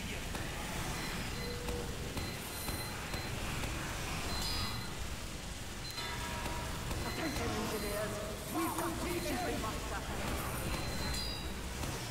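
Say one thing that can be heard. Gunfire rattles rapidly.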